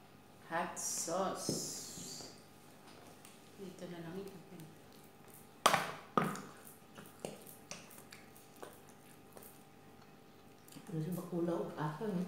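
A plastic sauce bottle squirts with a wet splutter.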